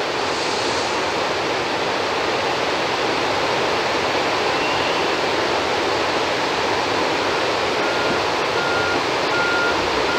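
Water roars as it pours through a dam's spillway.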